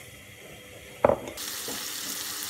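Chopped tomatoes drop into a hot pan with a thud.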